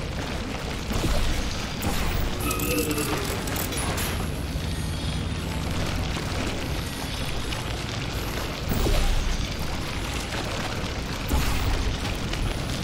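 A sci-fi gun fires with short electric zaps, several times.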